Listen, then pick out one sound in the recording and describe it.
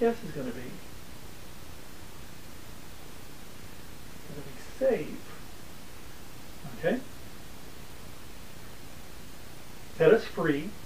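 A middle-aged man speaks calmly and close by, in short phrases with long pauses.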